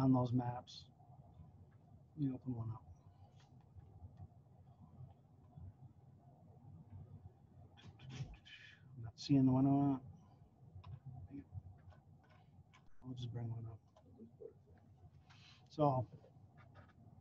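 A man talks calmly in short bursts over an online call.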